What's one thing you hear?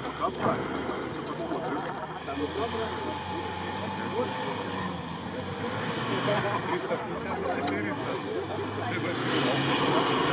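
An off-road vehicle's engine roars and revs as it drives through deep sand.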